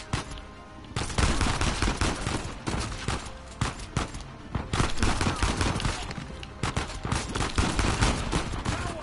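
A handgun fires single sharp shots.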